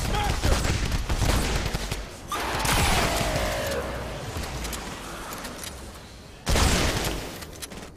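Video game gunfire rings out.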